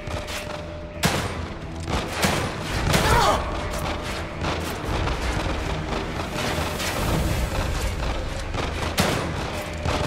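Pistol shots ring out in a large echoing room.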